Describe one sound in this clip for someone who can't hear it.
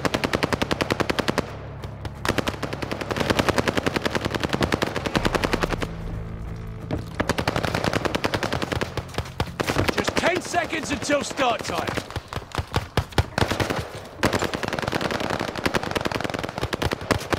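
A rifle fires in fast, rattling bursts.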